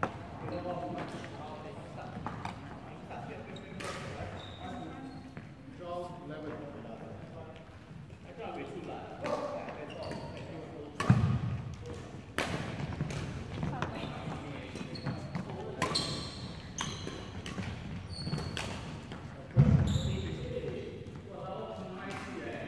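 Badminton rackets strike a shuttlecock with sharp pops in a large echoing hall.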